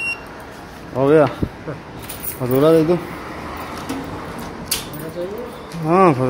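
A small printer whirs as it prints a receipt.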